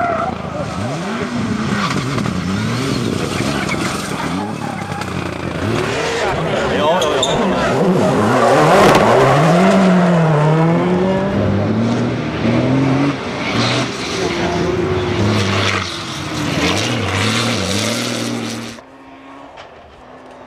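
Gravel sprays and rattles under spinning tyres.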